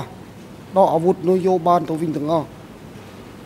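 An older man speaks briefly and calmly into a microphone.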